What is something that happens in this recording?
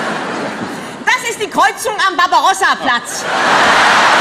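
A middle-aged woman speaks and laughs into a microphone.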